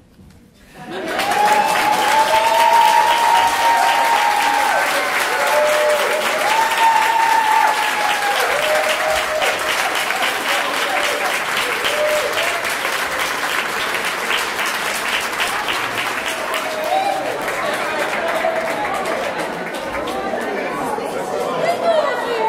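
Women in a crowd cheer and whoop with excitement.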